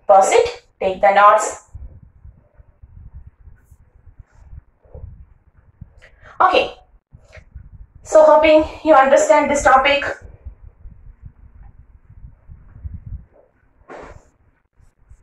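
A woman speaks calmly through a close microphone.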